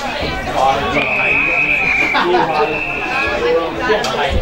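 A referee's whistle blows two sharp blasts.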